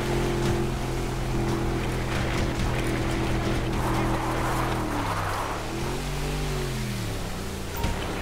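Water splashes and sprays against a boat's hull.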